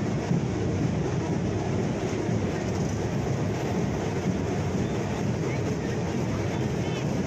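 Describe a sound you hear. A tractor engine rumbles nearby.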